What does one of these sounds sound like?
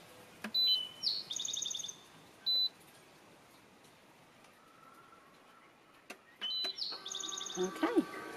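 An electronic appliance plays a short chiming tune.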